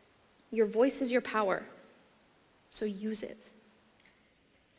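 A young woman speaks calmly through a microphone in a large hall.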